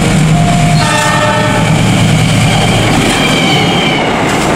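A train horn blares loudly close by.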